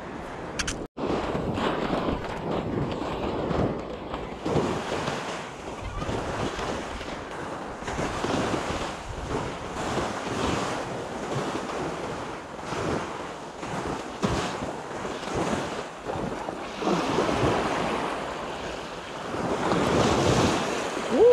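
Waves wash onto the shore nearby.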